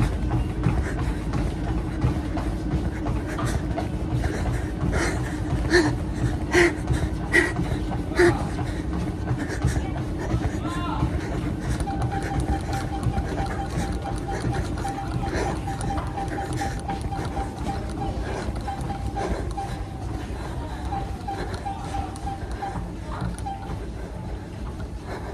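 An exercise machine whirs and rumbles steadily.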